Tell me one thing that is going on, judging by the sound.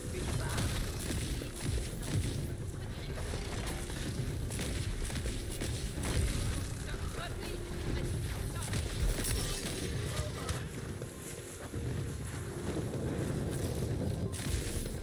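Guns fire in rapid bursts with loud blasts and electric crackling.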